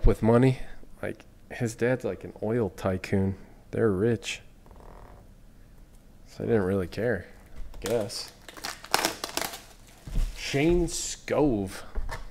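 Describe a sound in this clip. Cardboard boxes scrape and rustle.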